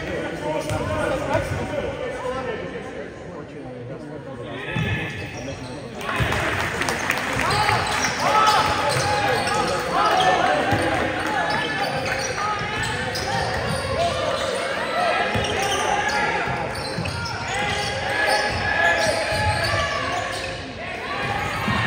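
Spectators murmur and call out in an echoing gym.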